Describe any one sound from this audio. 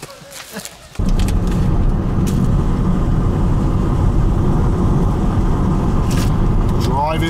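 A car engine and tyres rumble steadily on a road.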